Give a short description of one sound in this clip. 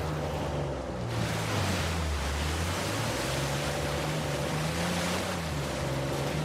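Water splashes under tyres.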